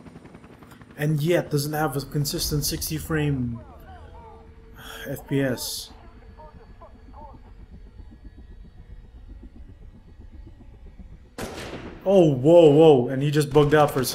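A man's voice commands loudly and harshly, close by.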